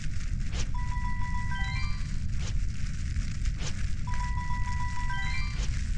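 Stars ping as they are collected.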